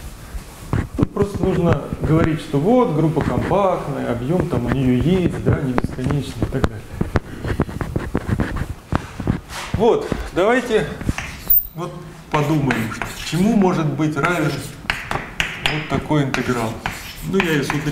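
A man lectures calmly in an echoing room.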